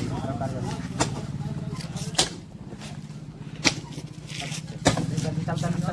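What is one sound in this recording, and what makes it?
A shovel scrapes and strikes into dry dirt.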